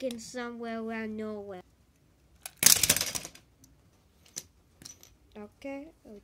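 A toy train clatters as it is moved on a wooden floor.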